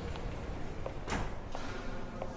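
A door slides open with a knock.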